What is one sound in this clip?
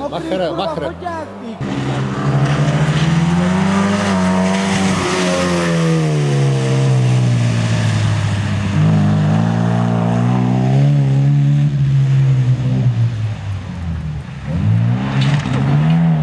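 Tyres spray slush and gravel.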